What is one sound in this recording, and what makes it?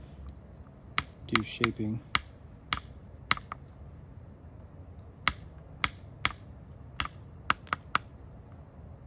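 An antler tool clicks and snaps sharply against stone as flakes break off.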